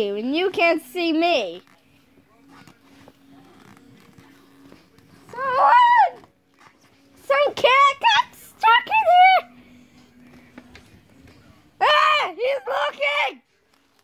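A young child squeals and cries out close by in short bursts.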